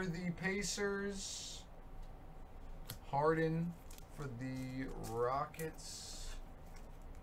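Trading cards rustle as they are handled.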